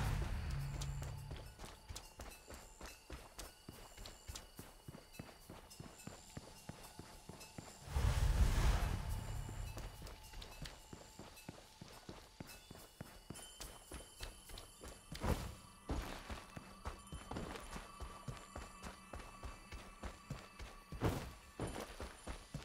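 Quick footsteps patter on stone and dirt.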